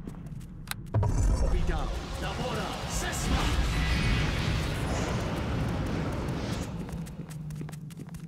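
A magical spell whooshes and roars loudly, then fades.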